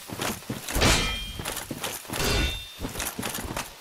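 A sword clashes with metal.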